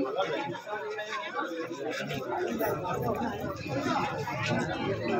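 A crowd of men talks and murmurs outdoors.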